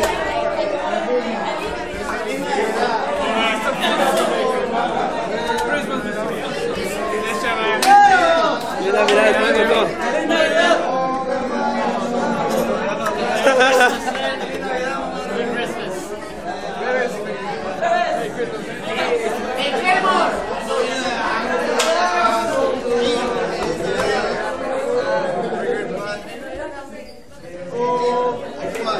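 A crowd of young men and women chatter and laugh close by.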